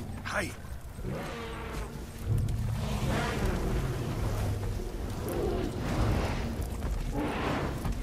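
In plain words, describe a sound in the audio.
Dry grass rustles and swishes as someone pushes through it.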